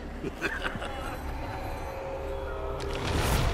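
A man speaks with a chuckle, close by.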